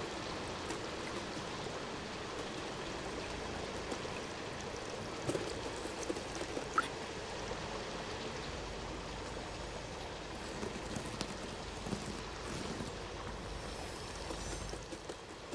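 A cat's paws patter softly on wooden boards.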